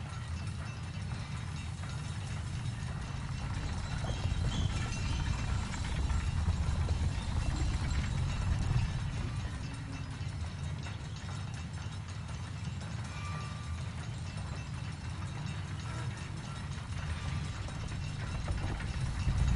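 A low rumble of roaring fire drones steadily.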